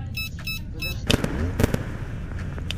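Electronic static crackles and hisses briefly.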